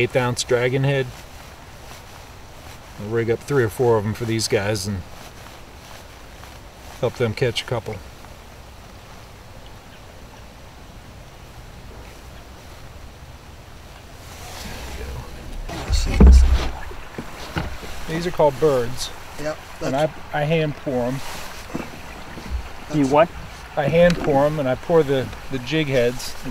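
A man talks calmly and close by, in short phrases.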